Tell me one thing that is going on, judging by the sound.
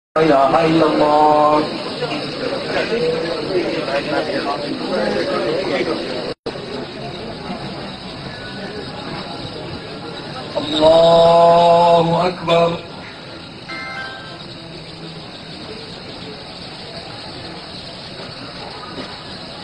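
A crowd of men talks and murmurs nearby.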